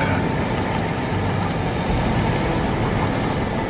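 Plastic bricks clatter and scatter as objects break apart.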